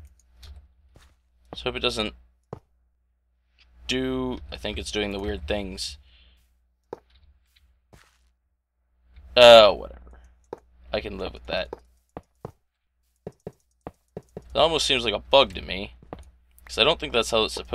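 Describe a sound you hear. Fence blocks are placed with short soft clicks.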